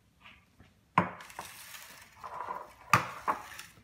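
An egg cracks sharply against a bowl.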